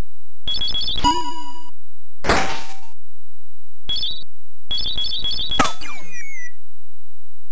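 Electronic arcade game bleeps and chirps in quick bursts.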